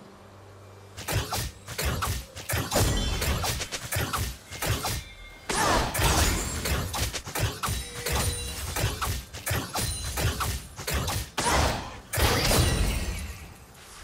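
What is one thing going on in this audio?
Game spells and weapon strikes clash and burst in a fast fight.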